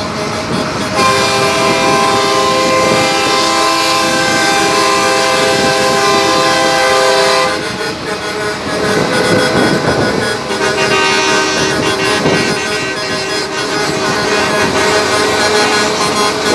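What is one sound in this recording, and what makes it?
A truck horn blares in long, steady blasts.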